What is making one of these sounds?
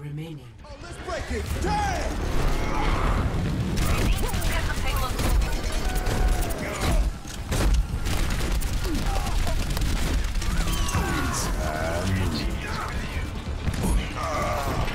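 Explosions and impacts boom in a video game battle.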